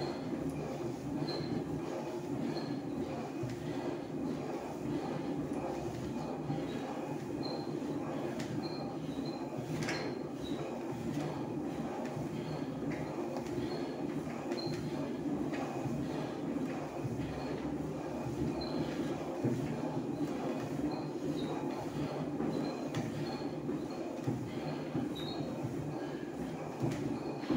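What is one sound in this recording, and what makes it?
An elliptical trainer whirs steadily as someone pedals.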